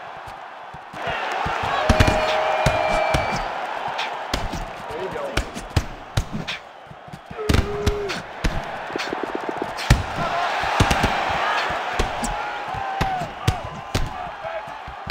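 A large crowd roars and cheers.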